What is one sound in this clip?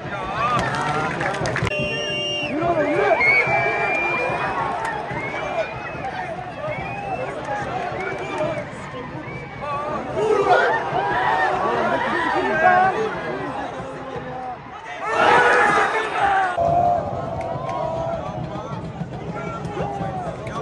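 A large stadium crowd chants and shouts throughout, echoing around an open stadium.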